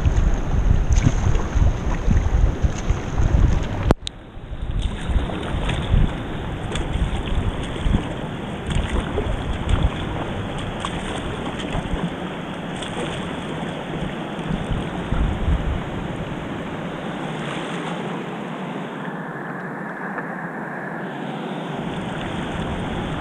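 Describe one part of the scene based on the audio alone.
Water swishes and gurgles against a kayak.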